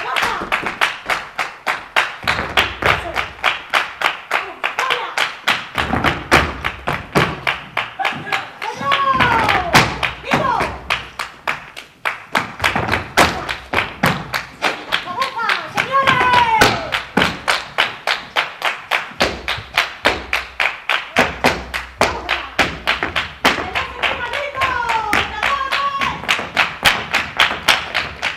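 Dancers' heels stamp and tap on a wooden stage.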